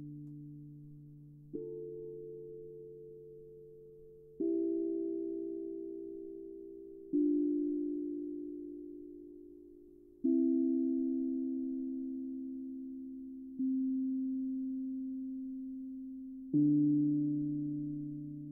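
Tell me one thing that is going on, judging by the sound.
Soft mallets strike a steel tongue drum, each note ringing out long and slowly fading.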